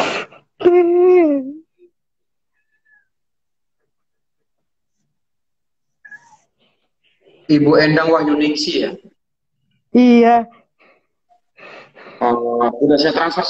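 A middle-aged woman sobs and speaks tearfully over an online call.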